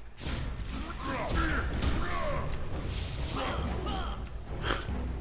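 Creatures screech and cry out during a fight.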